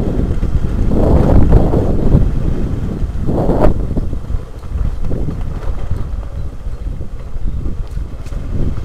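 A motorcycle engine rumbles steadily while riding.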